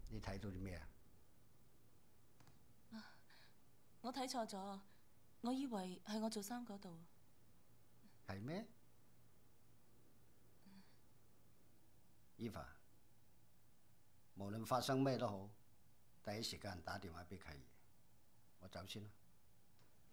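A young woman speaks softly and calmly up close.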